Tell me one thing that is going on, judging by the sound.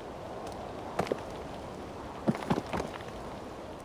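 Stones knock softly against one another.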